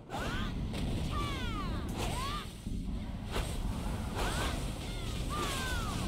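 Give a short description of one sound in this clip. Weapon blows strike in quick bursts.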